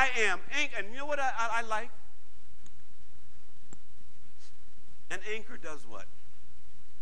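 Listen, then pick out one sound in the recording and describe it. A man speaks calmly into a clip-on microphone, with pauses.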